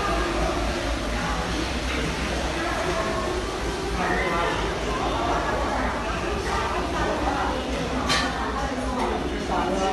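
A crowd of men and women murmur and chatter in a large room.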